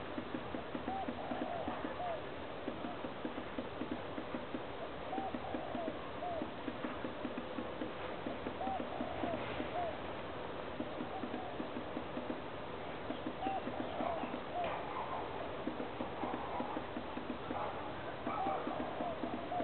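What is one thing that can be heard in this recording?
A small bird chirps repeatedly nearby.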